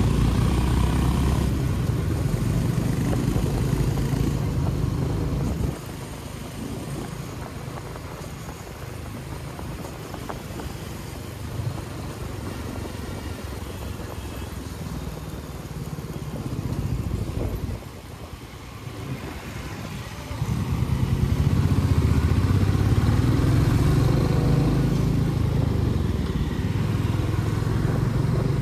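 A motorcycle engine rumbles up close, growing louder as it speeds up.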